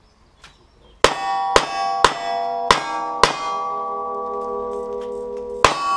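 Gunshots fire in quick succession outdoors.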